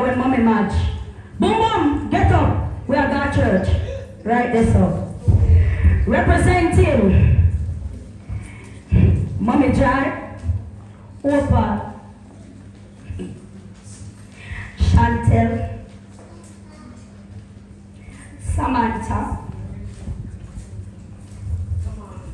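A young woman sings emotionally into a microphone, heard through loudspeakers in an echoing room.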